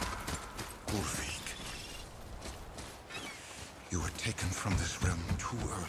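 Heavy footsteps thud on wet ground and wooden planks.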